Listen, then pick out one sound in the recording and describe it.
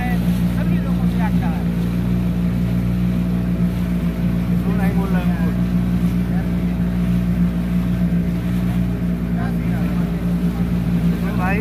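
A man speaks nearby with animation, heard over the engine.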